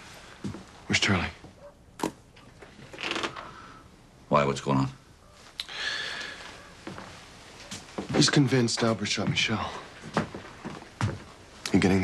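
A younger man speaks firmly nearby.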